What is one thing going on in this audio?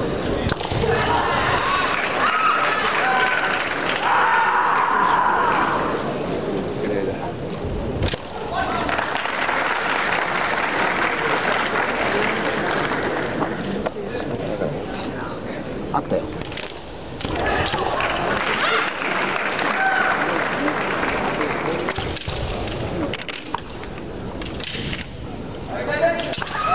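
A crowd in a large echoing hall cheers and murmurs.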